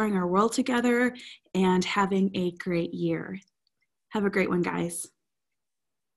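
A woman speaks cheerfully and with animation into a microphone close by.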